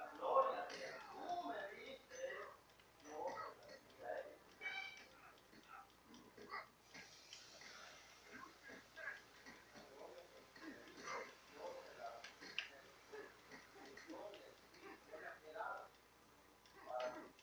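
Video game fighting sounds play from a television's speakers.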